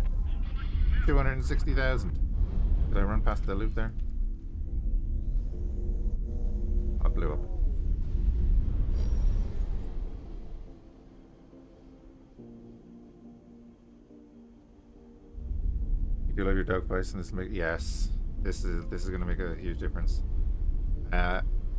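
A spaceship engine roars with a deep, steady rumble.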